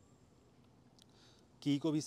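A switch on a motorcycle handlebar clicks once.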